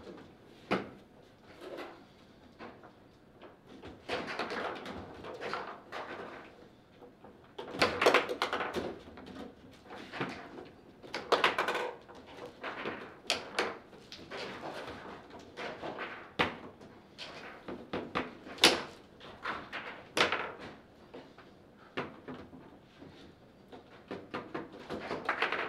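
Foosball rods clack and the ball knocks sharply against the table.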